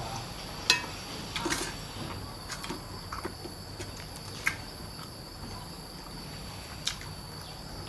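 Crisp leaves crunch and tear in a young man's hands.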